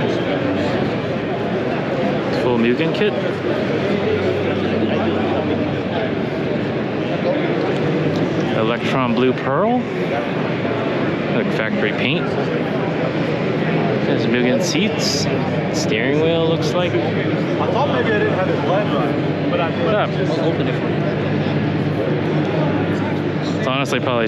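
A crowd murmurs and chatters all around in a large echoing hall.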